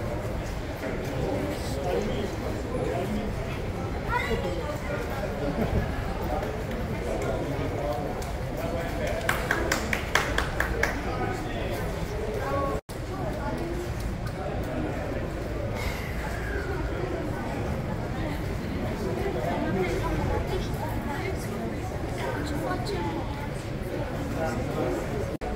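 A crowd of children chatter and call out nearby.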